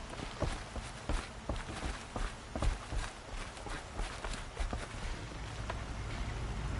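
Footsteps thud and knock on wooden boards.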